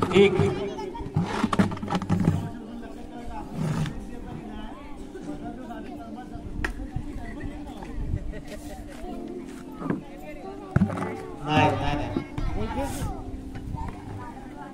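A crowd chatters and calls out outdoors.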